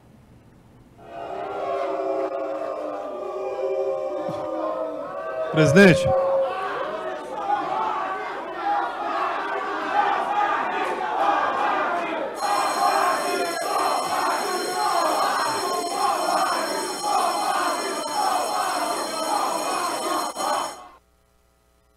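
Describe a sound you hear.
A crowd chatters and shouts in a large echoing hall.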